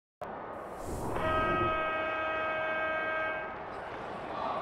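A crowd murmurs and cheers in a large stadium.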